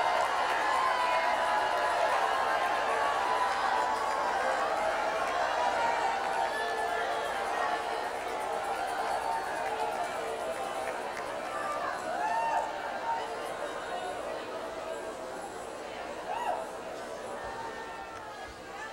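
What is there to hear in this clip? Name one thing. A large crowd cheers and sings in an echoing hall.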